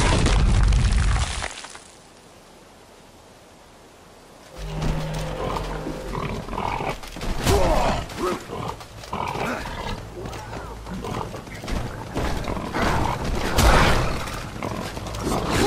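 A large beast stomps heavily as it charges.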